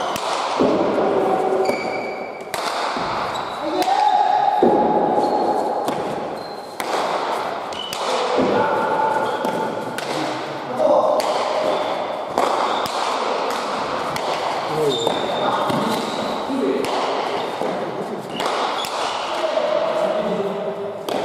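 A ball smacks hard against a wall and echoes through a large hall.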